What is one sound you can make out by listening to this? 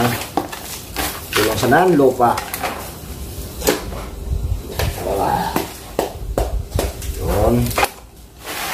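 A plastic bottle scrapes and crunches against loose gravel in a plastic tub.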